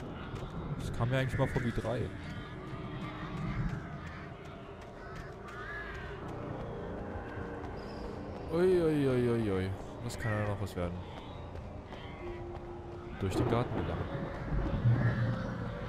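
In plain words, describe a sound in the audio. A young man talks with animation into a close microphone.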